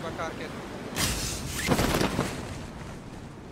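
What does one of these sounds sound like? A parachute snaps open with a loud whoosh.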